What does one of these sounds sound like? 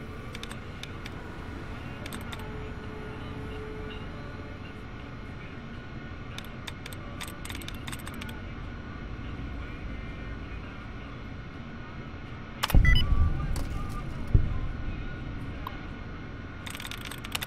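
A computer terminal gives short electronic clicks as keys are pressed.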